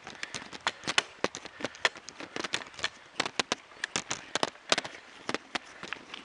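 Footsteps tap quickly on a paved road.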